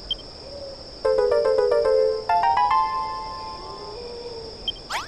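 A bright jingle plays a quick rising run of notes.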